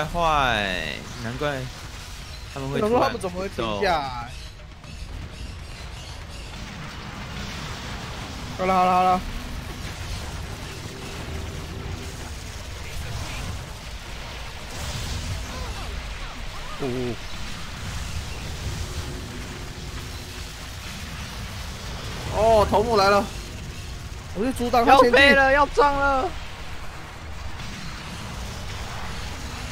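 An energy gun fires in bursts.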